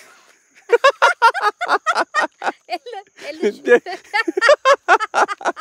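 A man laughs loudly close up.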